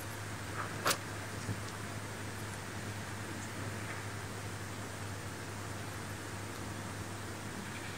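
A small bird pecks softly at wood.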